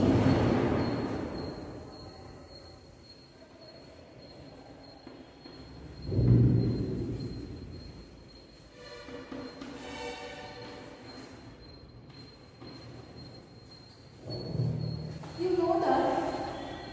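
A young woman speaks calmly, as if teaching.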